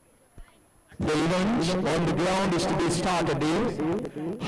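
A crowd of young people shouts and cheers loudly outdoors.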